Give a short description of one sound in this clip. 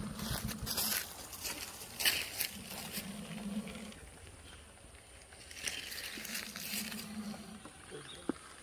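A plastic bottle scrapes and rustles over dry leaves.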